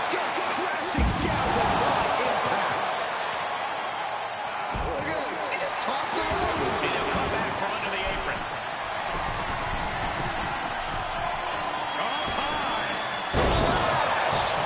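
Heavy thuds of bodies hitting the floor ring out.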